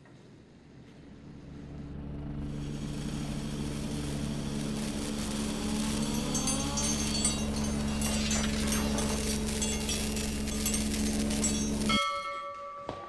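An electric wheelchair motor whirs loudly as the wheelchair spins.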